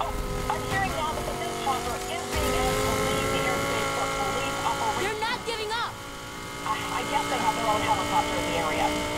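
A sports car engine roars steadily at high speed.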